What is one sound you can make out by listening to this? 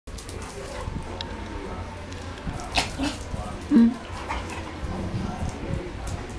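A dog's claws tap on a tiled floor.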